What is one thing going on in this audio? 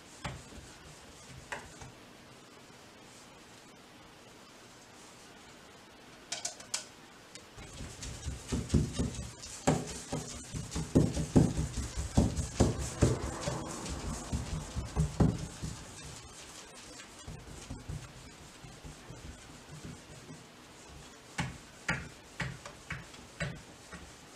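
A paintbrush swishes softly across wood.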